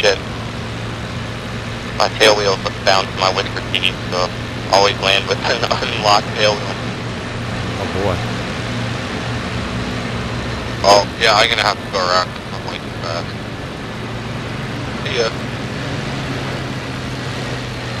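Rain patters on a cockpit canopy.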